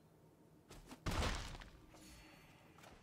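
A magical whoosh and chime sound out.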